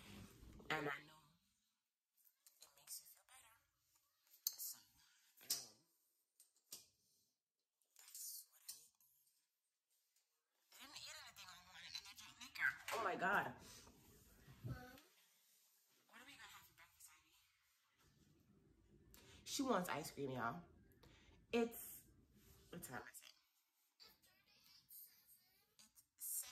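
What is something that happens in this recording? A woman talks calmly and close by, with pauses.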